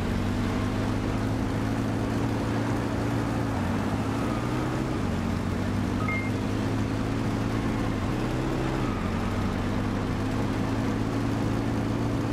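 A car engine hums steadily, dipping in pitch briefly as it slows for turns.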